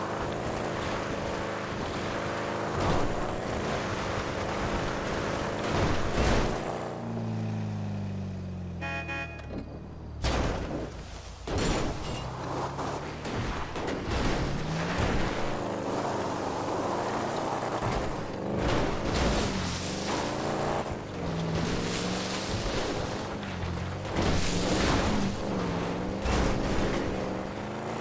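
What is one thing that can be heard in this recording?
Tyres crunch over snow and gravel.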